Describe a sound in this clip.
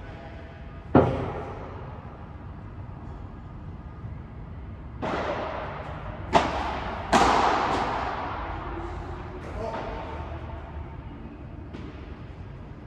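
Padel rackets strike a ball with sharp pops that echo around a large hall.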